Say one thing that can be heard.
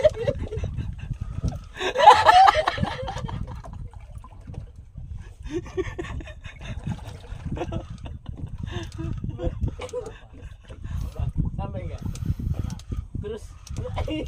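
Wind rumbles against a microphone outdoors on open water.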